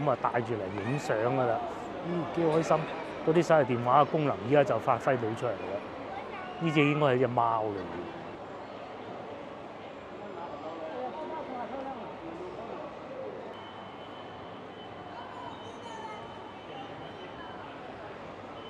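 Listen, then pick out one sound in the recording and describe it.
Voices murmur softly in a large echoing hall.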